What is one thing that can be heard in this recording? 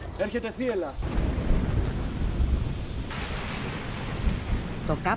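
Thunder rumbles loudly.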